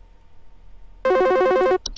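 An old telephone rings loudly with a shrill bell.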